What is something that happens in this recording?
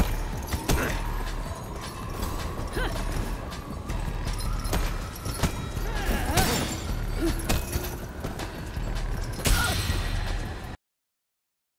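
Blows and kicks thud and smack in a fight.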